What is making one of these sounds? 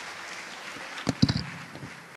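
A man begins speaking through a microphone.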